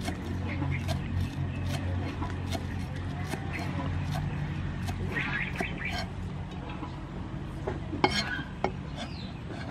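A cleaver chops rapidly on a wooden board.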